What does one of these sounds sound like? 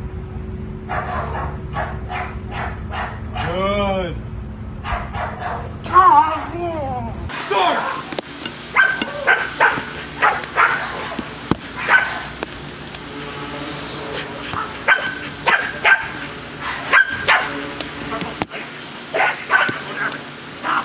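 A dog barks loudly and sharply, again and again.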